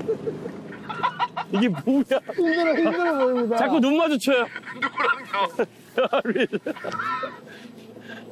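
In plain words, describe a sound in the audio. Men laugh loudly and with excitement close by.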